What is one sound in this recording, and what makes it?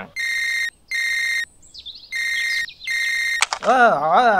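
A phone rings with repeated electronic beeps.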